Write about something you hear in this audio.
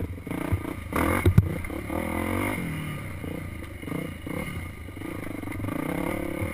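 A dirt bike engine revs and drones up close, rising and falling in pitch.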